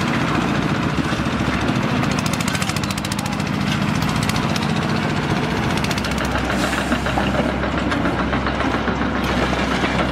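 A small tractor engine rumbles steadily nearby.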